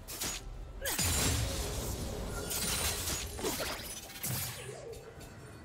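Magic spells burst and crackle in a game fight.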